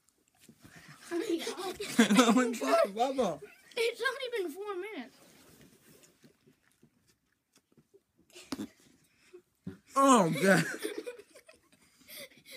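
Young boys laugh loudly close by.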